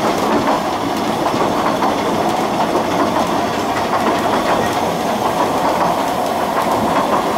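A narrow-gauge steam locomotive chuffs as it runs.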